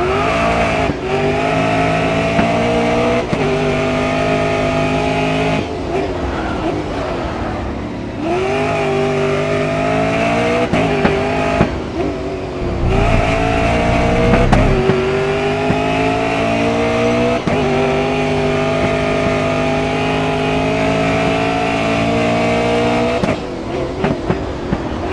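A racing car engine roars loudly, rising in pitch as it speeds up and dropping on each gear change.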